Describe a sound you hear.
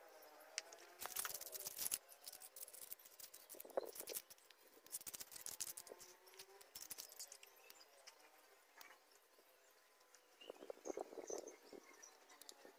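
A trowel scrapes on stone tiles.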